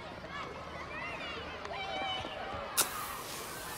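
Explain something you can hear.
Children chatter excitedly nearby.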